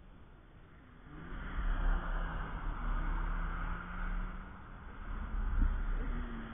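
A car engine roars as it speeds past close by.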